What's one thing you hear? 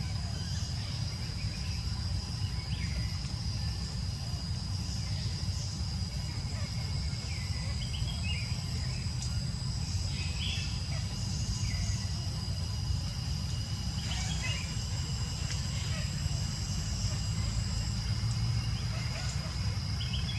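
A baby monkey squeaks softly now and then.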